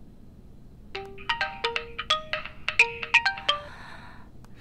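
Phone keys beep as a number is dialled.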